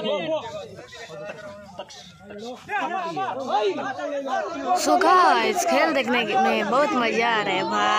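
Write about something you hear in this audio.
A crowd of boys and young men shouts and cheers outdoors.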